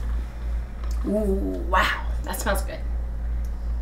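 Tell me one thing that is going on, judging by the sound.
A woman speaks briefly and cheerfully, close to a microphone.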